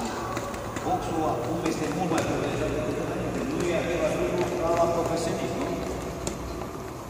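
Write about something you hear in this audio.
An elderly man speaks loudly in a large echoing hall.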